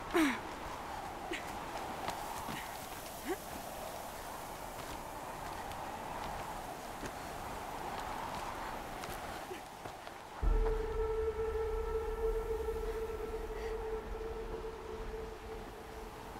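Wind howls steadily in a snowstorm.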